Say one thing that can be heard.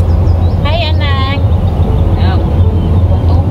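A young woman speaks up close, with high, animated pitch.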